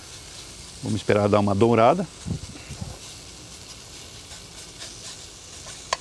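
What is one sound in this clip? A wooden spatula scrapes and stirs in a frying pan.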